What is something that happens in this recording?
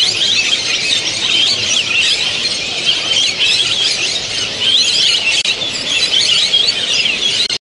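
A canary sings a fast, trilling song close by.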